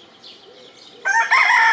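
A rooster crows loudly close by.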